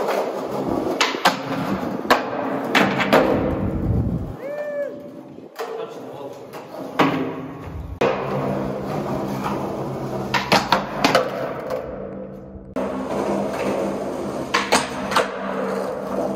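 A skateboard snaps and clacks sharply against the ground.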